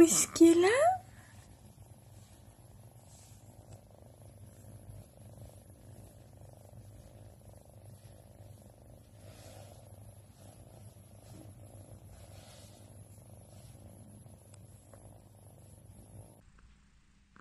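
A cat purrs steadily and softly up close.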